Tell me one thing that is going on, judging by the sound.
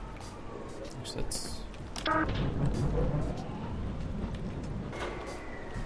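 A rail cart rumbles along a track.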